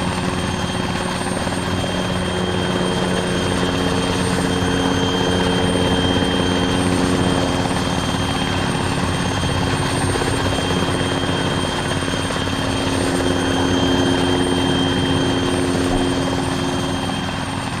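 A helicopter's engine whines steadily.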